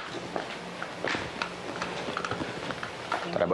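Footsteps tap across a hard floor.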